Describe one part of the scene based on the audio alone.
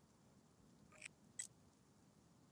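Two short electronic menu clicks sound.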